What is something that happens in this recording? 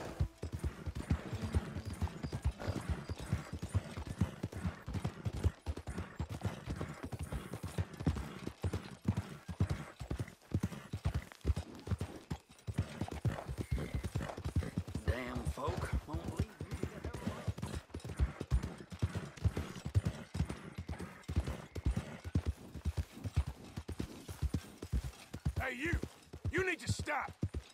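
Horse hooves thud quickly and steadily on a dirt track.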